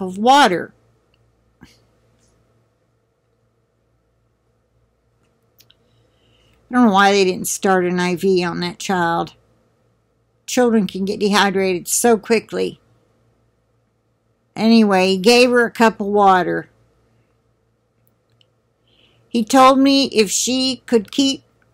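An elderly woman talks calmly and close up, heard through a microphone, in short bursts with pauses.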